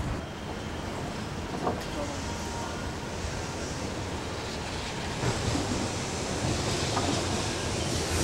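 An electric train rumbles slowly along the tracks.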